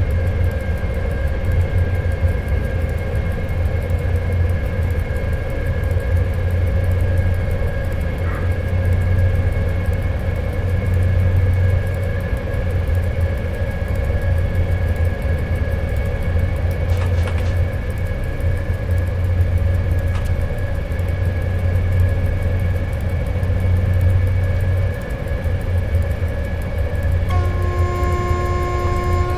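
A train engine rumbles and hums steadily.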